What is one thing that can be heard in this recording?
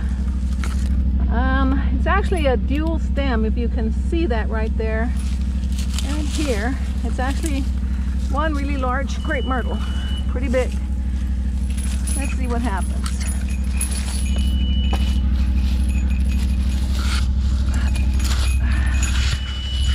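Dry leaves and twigs rustle and crackle close by.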